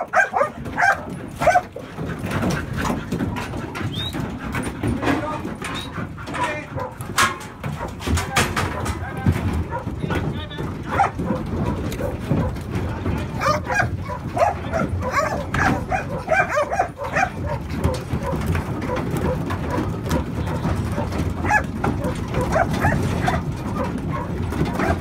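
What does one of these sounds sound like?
Many sheep bleat loudly, close by.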